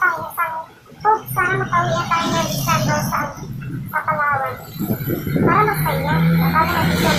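A young man talks animatedly, close to a microphone.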